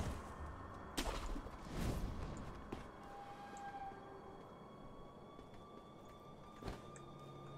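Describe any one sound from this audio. Footsteps land with heavy thuds on a tiled roof.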